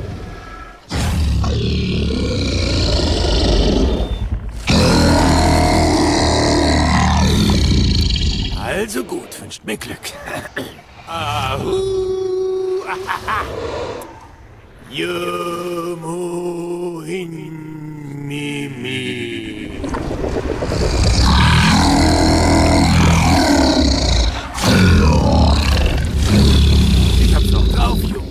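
A giant serpent speaks in a deep, booming, rumbling voice.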